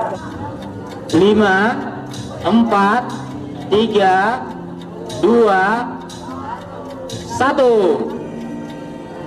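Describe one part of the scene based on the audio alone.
A man counts down loudly over a loudspeaker in an echoing hall.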